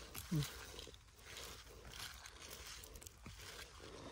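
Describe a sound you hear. Mushroom stems snap softly as they are picked from moss.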